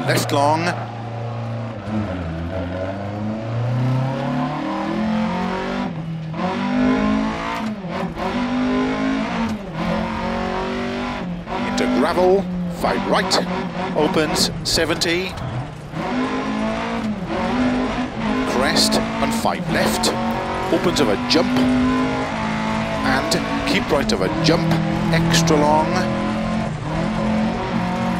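A rally car engine roars, revving up and dropping with each gear change.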